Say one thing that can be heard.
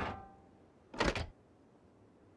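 A wooden door swings open with a thud.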